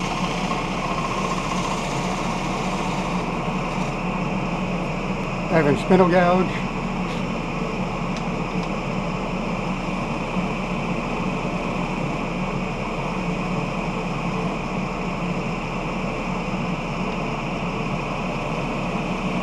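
A wood lathe motor hums.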